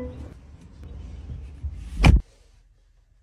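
A car door handle clicks and the door opens.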